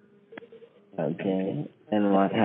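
An elderly woman speaks with animation over a phone line.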